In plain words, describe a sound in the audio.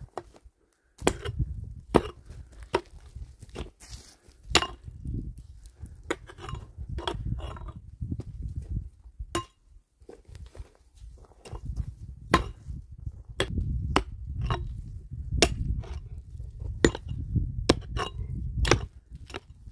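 A pickaxe strikes hard, dry earth again and again.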